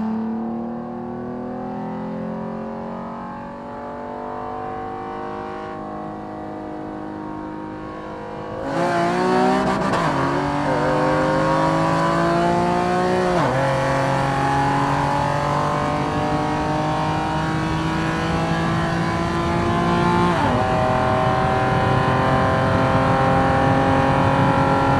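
A car engine hums, then roars loudly as it accelerates hard, its pitch climbing and dropping sharply with each gear change.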